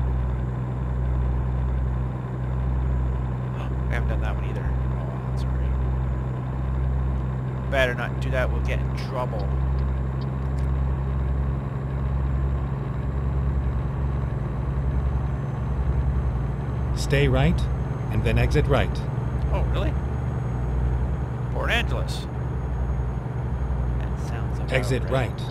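A truck engine drones steadily at a low pitch.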